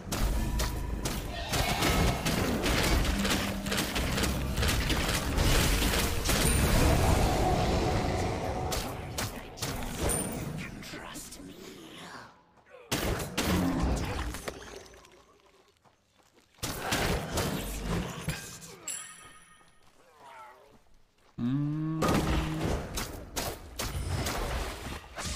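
Game combat effects clash and burst with heavy impacts.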